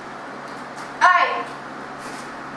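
A girl shouts a sharp cry once.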